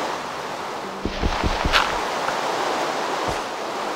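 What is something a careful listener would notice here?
A block of dirt is dug out with crunching thuds.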